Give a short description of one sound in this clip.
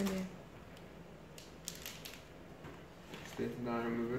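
Protective plastic film crinkles as it is peeled off a laptop.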